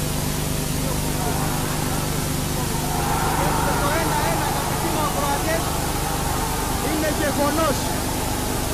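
A large stadium crowd bursts into loud cheering.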